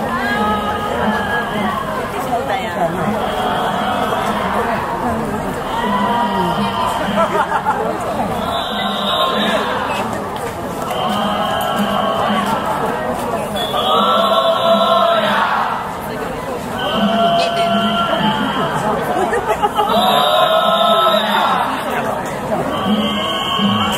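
A group of men chant loudly in rhythmic call and response as they march.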